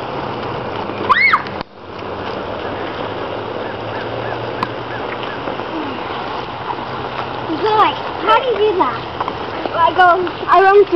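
Young children shout and squeal excitedly outdoors.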